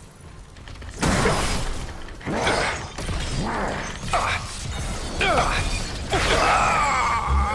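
Energy blasts crackle and roar in bursts.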